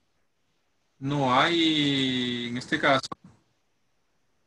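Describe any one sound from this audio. A young man speaks briefly through a microphone, drawing out a word.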